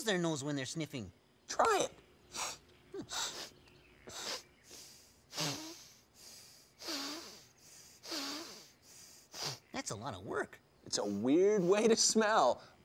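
A man speaks cheerfully and close by.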